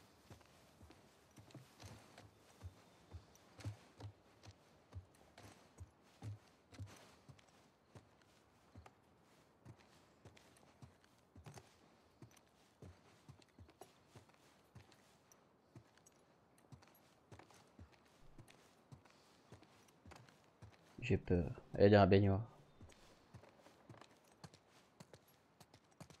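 Footsteps thud on wooden stairs and floorboards indoors.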